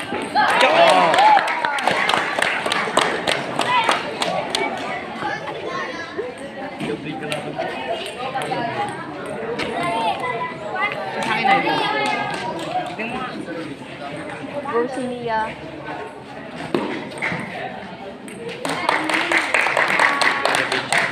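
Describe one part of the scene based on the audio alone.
Children chatter and shout nearby.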